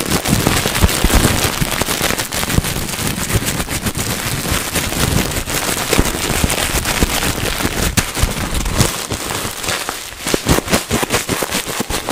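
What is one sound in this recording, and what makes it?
Plastic bubble wrap crinkles and rustles close to a microphone.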